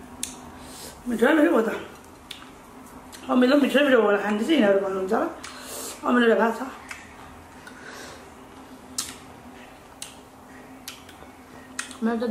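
Women chew and smack their lips while eating.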